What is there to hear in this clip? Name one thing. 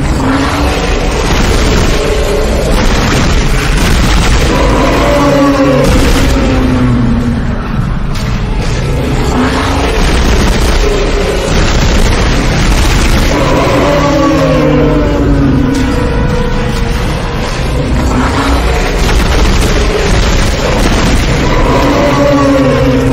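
A weapon fires shots in rapid bursts.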